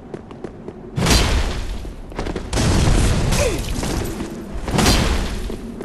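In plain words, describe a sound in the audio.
A sword clashes and slashes with heavy blows.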